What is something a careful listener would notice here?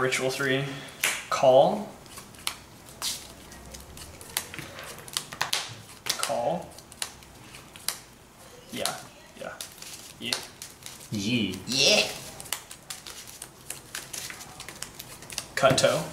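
Playing cards rustle and flick as hands shuffle them.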